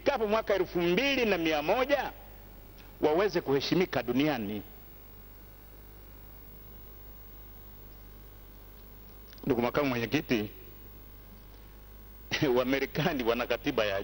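A man speaks with animation into a microphone, in bursts with pauses.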